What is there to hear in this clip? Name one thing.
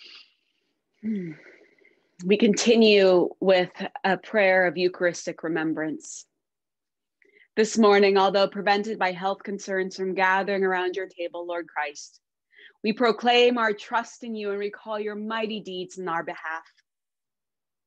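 A woman reads aloud calmly, heard through an online call.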